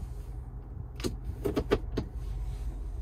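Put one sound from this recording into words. A dial on a car console clicks a few times.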